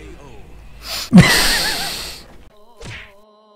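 A second man laughs into a close microphone.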